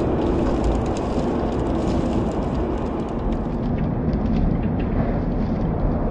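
A heavy load of wood chips tumbles and crashes onto a road.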